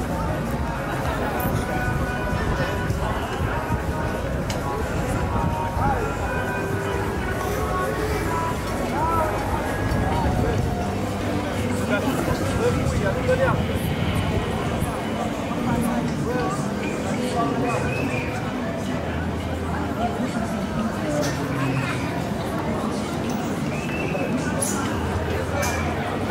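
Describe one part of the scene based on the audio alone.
A fairground swing ride rumbles and whirs steadily.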